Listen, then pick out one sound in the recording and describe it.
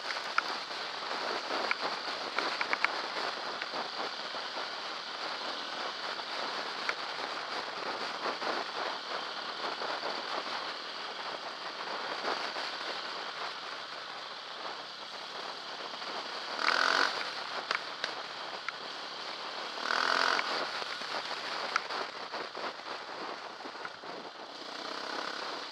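Wind rushes loudly against a microphone.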